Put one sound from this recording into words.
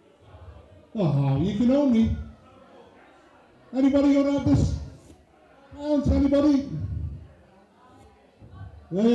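A man speaks with animation into a microphone, heard through a loudspeaker in a large room.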